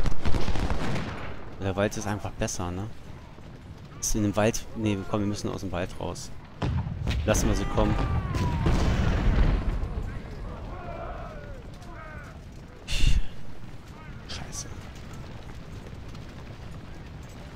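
Musket volleys crackle in a distant battle.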